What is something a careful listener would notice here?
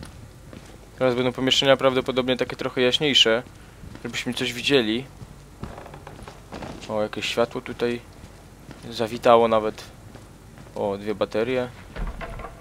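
A young man talks animatedly into a headset microphone, heard close.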